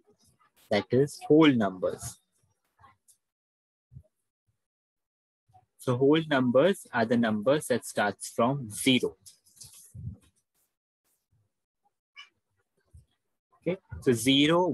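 A young man speaks calmly through a microphone, heard as in an online call.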